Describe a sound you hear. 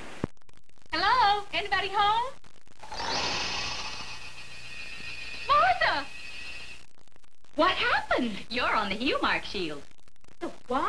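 A woman speaks brightly and with animation, close by.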